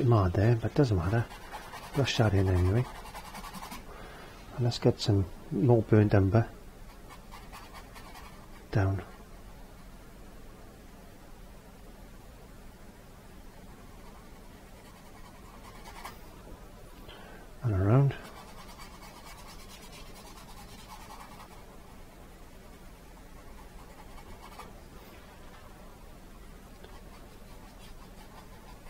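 A brush softly strokes across canvas.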